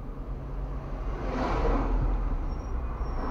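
A van rushes past close by.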